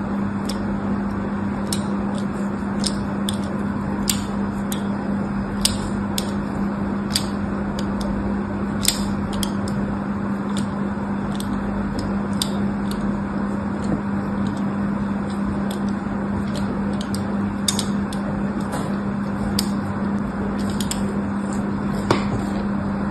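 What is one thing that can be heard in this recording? A needle scratches lines into a bar of soap, with sharp little clicks.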